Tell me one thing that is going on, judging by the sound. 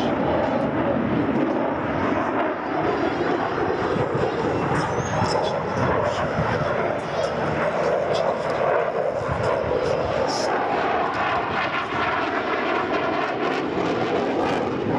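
A jet engine roars loudly overhead, with a rumbling, shifting tone.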